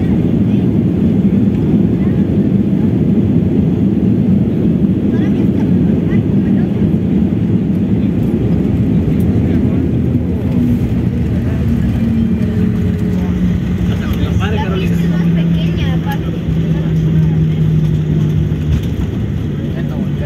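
Wheels rumble and rattle over the runway.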